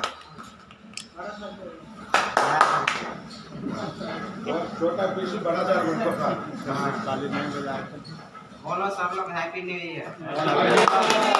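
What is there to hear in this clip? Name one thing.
Men talk and chat nearby.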